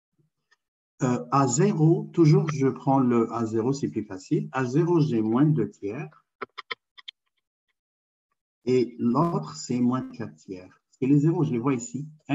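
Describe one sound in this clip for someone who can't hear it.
A man speaks calmly through an online call microphone.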